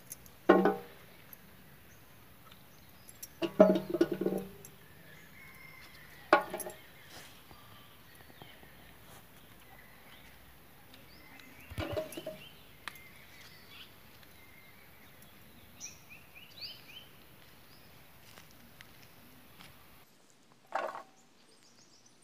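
A woman speaks in short bursts nearby.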